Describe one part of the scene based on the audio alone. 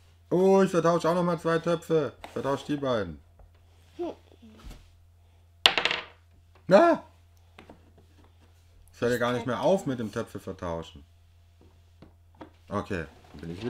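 Small plastic pieces click on a table.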